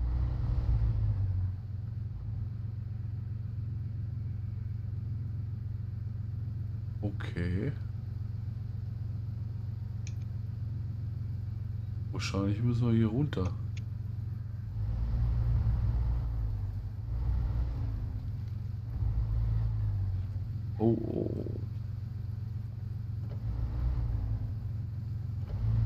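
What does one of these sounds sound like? A truck engine rumbles low and strains as it crawls over rough ground.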